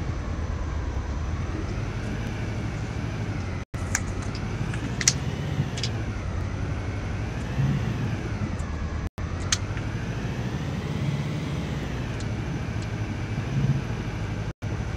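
An armoured vehicle's engine rumbles steadily as it drives.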